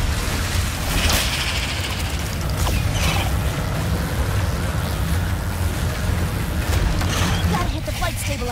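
Rushing air whooshes past at high speed.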